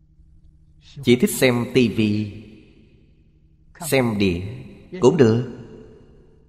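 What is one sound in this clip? An elderly man speaks calmly and warmly into a microphone, close by.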